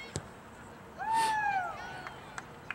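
A young woman shouts from across an open field.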